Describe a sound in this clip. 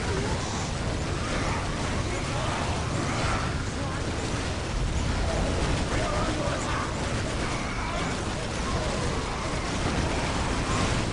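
Gunfire rattles and bursts rapidly in a battle.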